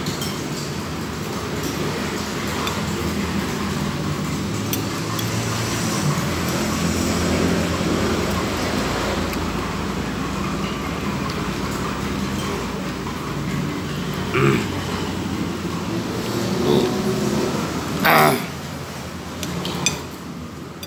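A spoon and fork scrape and clink against a plate.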